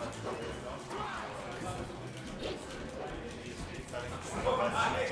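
Video game fight sounds of punches and hits play in quick bursts.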